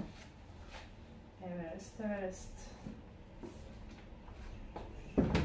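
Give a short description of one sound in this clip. Books knock and slide as they are handled on a shelf.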